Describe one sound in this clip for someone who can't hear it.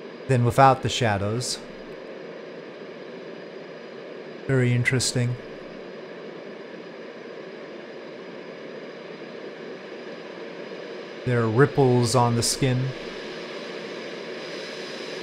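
A jet airliner's engines roar steadily in flight.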